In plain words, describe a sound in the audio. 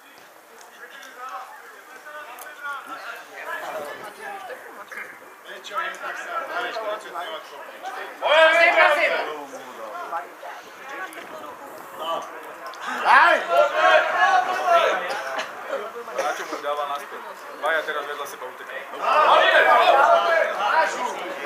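Men shout and call to each other outdoors in the distance.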